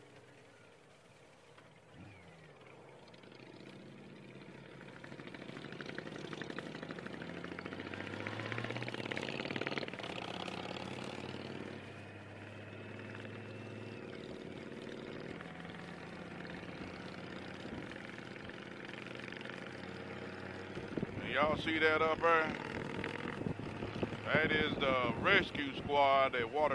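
A motorcycle engine hums and rises in pitch as the bike speeds up.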